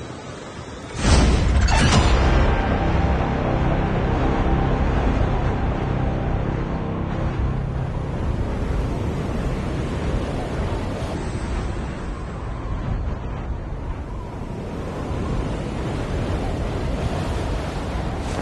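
Wind rushes past a wingsuit skydiver in freefall.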